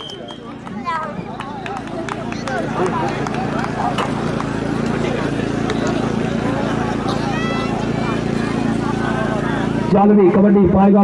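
A large outdoor crowd murmurs and cheers.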